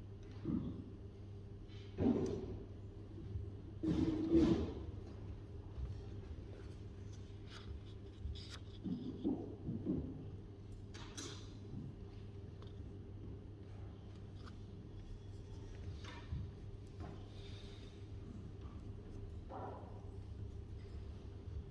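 A book's pages rustle softly as they turn.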